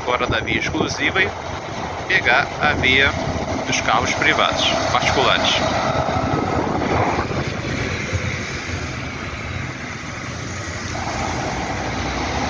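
A bus engine rumbles as it drives up and passes close by.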